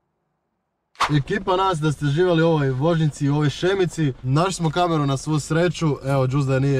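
A young man talks with animation, close by.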